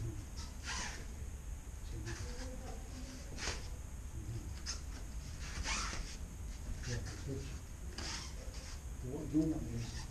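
Bare feet thud and shuffle on a padded mat in an echoing hall.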